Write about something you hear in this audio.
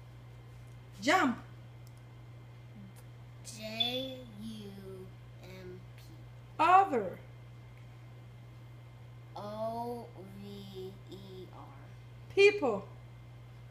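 A young boy lets out short, sharp, high shouts.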